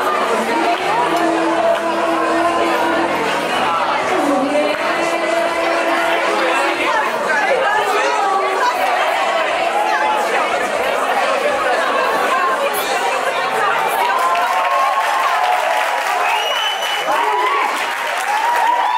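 A large crowd of men and women chatters loudly in a big, echoing room.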